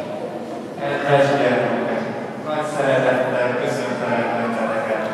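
A man speaks into a microphone, heard through loudspeakers in a large echoing hall.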